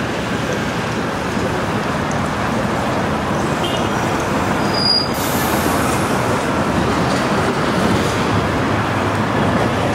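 Footsteps scuff on a paved path.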